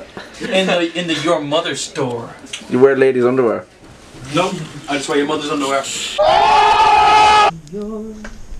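A young man talks excitedly up close.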